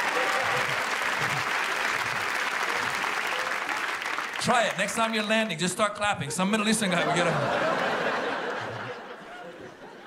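A large audience laughs loudly in a hall.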